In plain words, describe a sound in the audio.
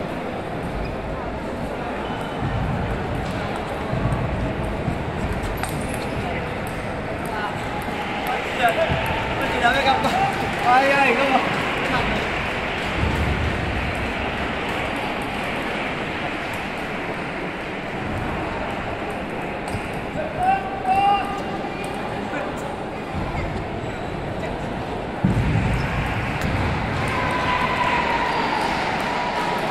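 A crowd murmurs through a large echoing hall.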